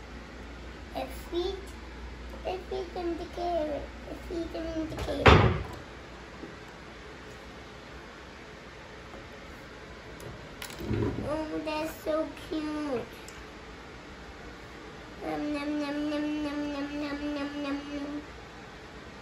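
A young boy speaks nearby.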